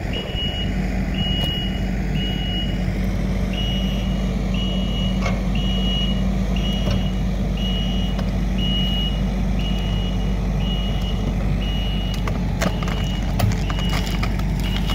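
A machine engine rumbles steadily close by.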